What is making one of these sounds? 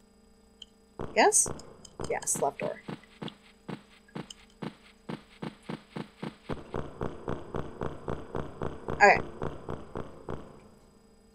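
A young woman talks casually into a close microphone.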